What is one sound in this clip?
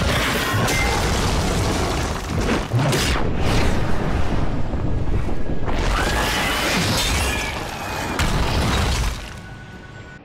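Stone crashes and shatters in loud explosions.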